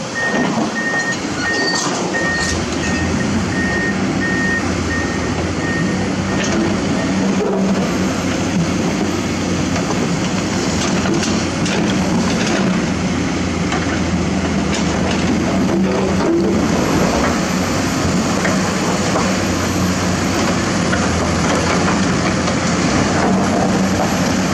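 A hydraulic excavator's diesel engine rumbles under load.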